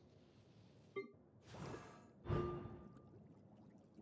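Soft interface clicks and whooshes sound.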